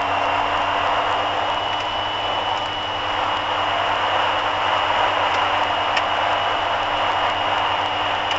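A car's engine hums steadily from inside the car.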